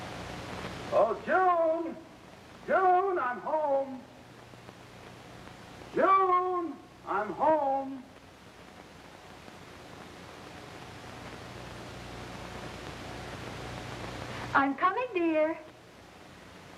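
A woman sings short, gliding phrases in a thin, old recording.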